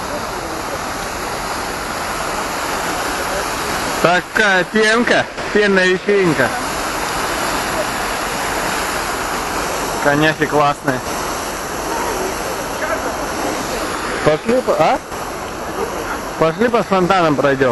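Fountain water splashes and rushes steadily.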